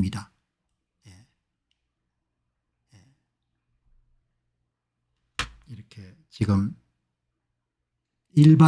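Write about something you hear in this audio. An older man speaks calmly and haltingly into a close microphone.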